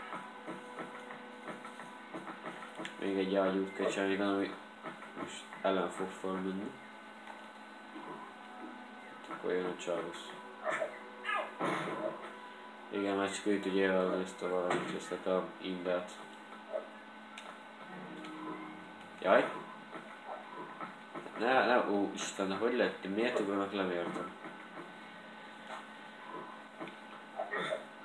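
Soft game music plays through a television speaker.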